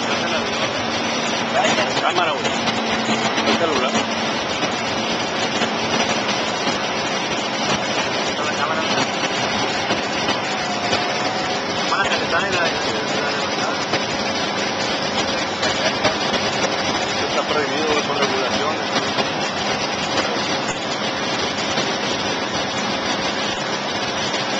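A small propeller plane's engine drones loudly and steadily from inside the cockpit.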